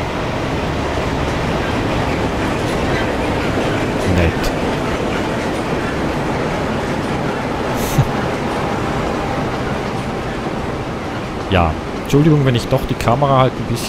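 A freight train rumbles and clatters past close by on the rails.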